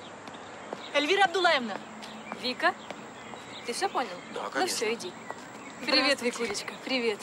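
A woman exclaims and laughs in greeting.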